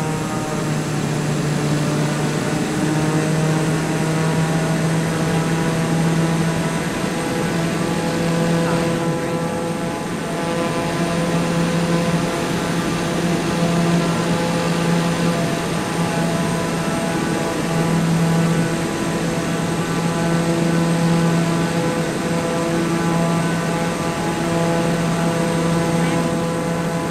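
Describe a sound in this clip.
A single-engine propeller plane drones in flight.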